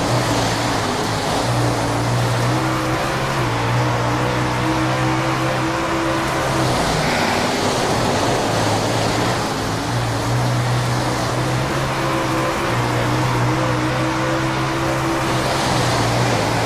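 A race car engine roars loudly, revving up and down.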